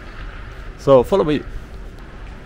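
A man speaks briefly and loudly, close to a microphone.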